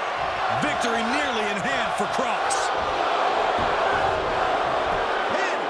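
A large crowd cheers and roars loudly in a big arena.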